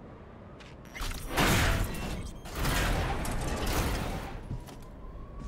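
A heavy metal door grinds and scrapes as it is forced open.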